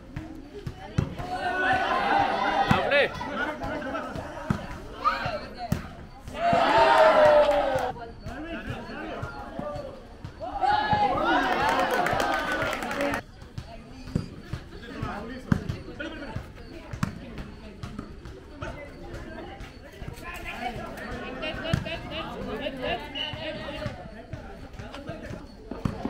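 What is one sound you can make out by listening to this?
A volleyball is struck by hands with sharp thumps.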